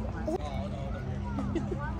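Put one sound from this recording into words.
Kayak paddles dip and splash in calm water nearby.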